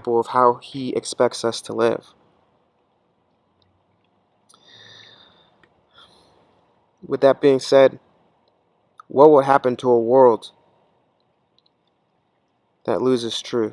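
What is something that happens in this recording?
A man speaks calmly close by, in short phrases with pauses.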